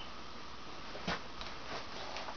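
A man sits down heavily on a couch with a soft thump.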